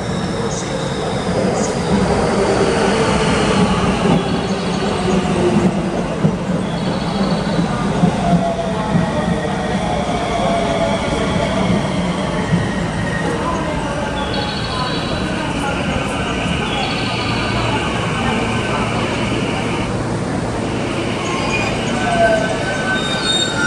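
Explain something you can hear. Train wheels squeal and screech against the rails.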